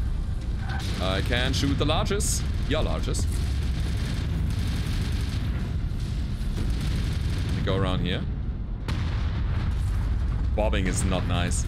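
Heavy game weapons fire in rapid bursts.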